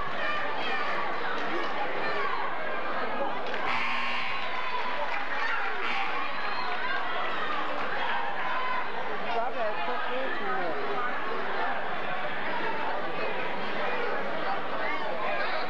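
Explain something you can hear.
A crowd of spectators chatters loudly in a large echoing gym.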